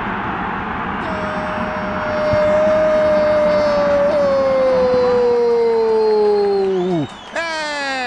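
A crowd cheers loudly in a stadium.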